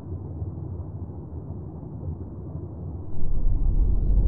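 Thrusters hiss and bubble in the water.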